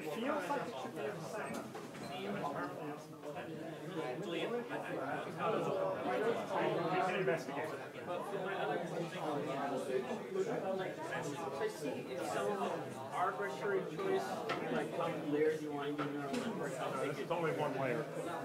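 Several people talk over one another in a room that echoes.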